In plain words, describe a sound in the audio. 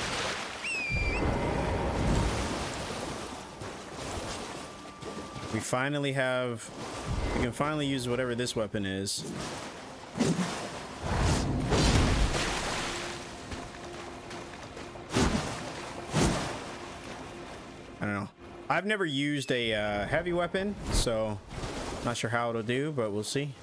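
Horse hooves splash through shallow water.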